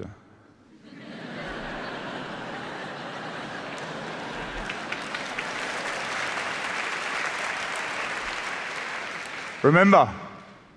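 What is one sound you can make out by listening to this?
A large audience applauds in a big hall.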